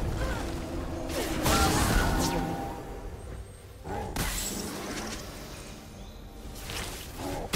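Magic spell effects whoosh and burst in quick flurries.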